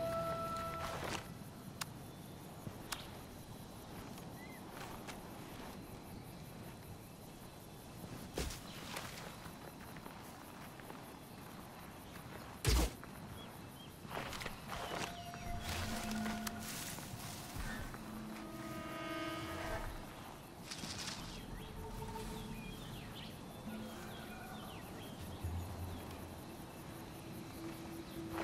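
Footsteps crunch and rustle through dense undergrowth.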